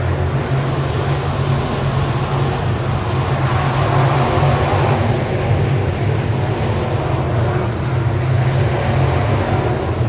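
Race car engines roar loudly outdoors as cars speed around a track.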